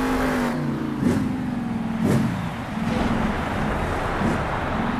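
A monster truck crashes and tumbles onto dirt with heavy thuds.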